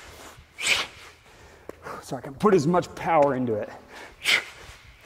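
A man exhales sharply with each swing.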